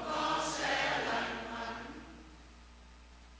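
A man speaks aloud, echoing in a large hall.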